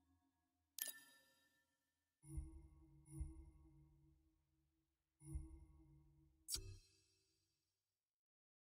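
Short electronic chimes and whooshes sound as menu choices change.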